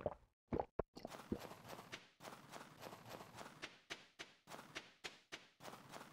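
Footsteps crunch rhythmically through snow.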